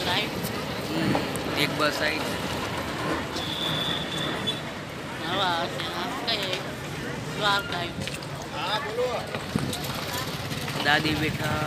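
A young man talks close by.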